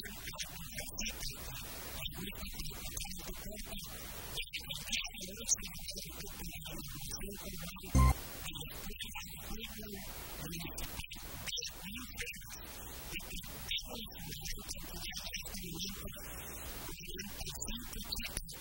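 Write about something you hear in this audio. A large outdoor crowd of children and adults murmurs and chatters.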